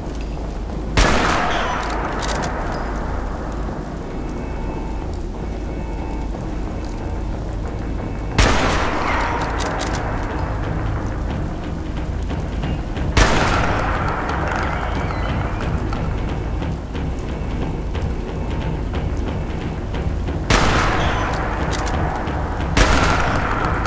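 A heavy gun fires single loud shots, each followed by a rolling echo.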